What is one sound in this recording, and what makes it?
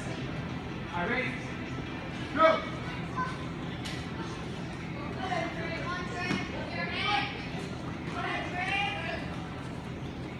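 Children shout sharply while sparring in an echoing hall.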